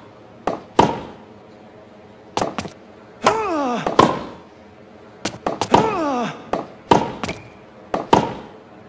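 A tennis ball is struck with sharp, hollow pops again and again.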